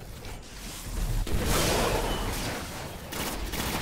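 A heavy blast booms and rumbles.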